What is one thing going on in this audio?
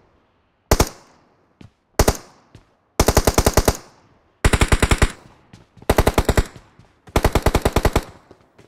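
An automatic rifle fires in short, rapid bursts that ring out and fade.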